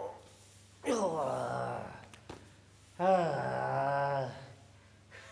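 A man groans long and loudly in a drawn-out, wavering voice.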